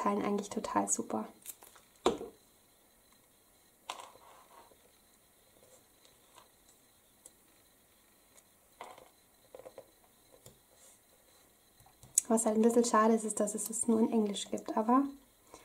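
Paper rustles and taps softly as small pieces are pressed onto a card.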